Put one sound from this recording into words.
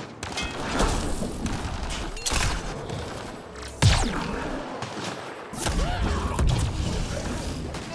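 An electric blast crackles and booms.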